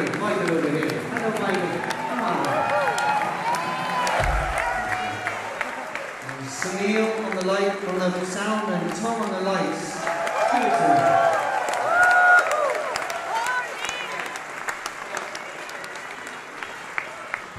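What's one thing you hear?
A man sings into a microphone.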